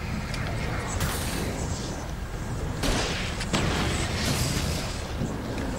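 A flare hisses and burns loudly.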